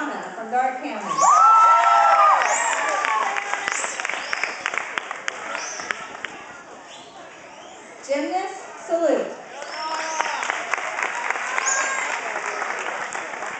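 Young girls shout and squeal excitedly.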